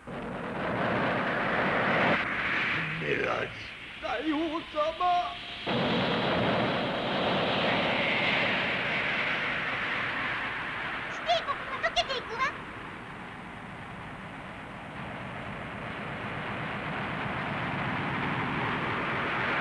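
Water bubbles and gurgles steadily underwater.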